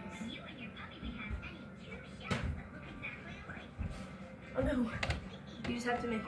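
Feet thump on the floor as a boy jumps and lands.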